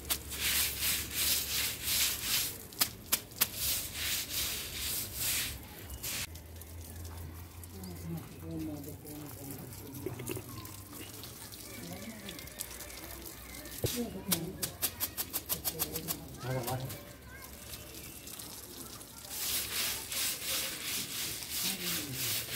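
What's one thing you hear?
Water sprays from a hose onto the ground.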